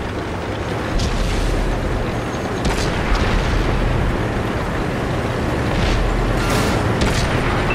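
Tank tracks clank and grind over pavement.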